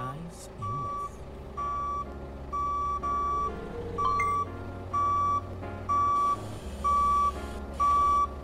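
A forklift engine idles with a low hum.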